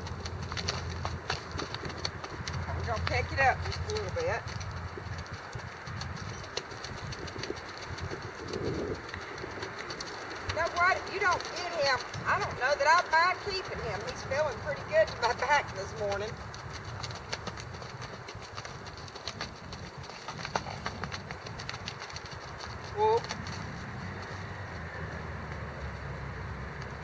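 A horse's hooves thud softly on loose dirt.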